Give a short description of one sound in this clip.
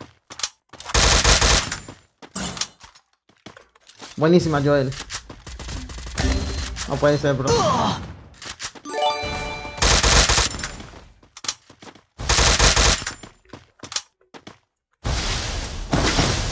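Rapid gunfire rattles in short bursts.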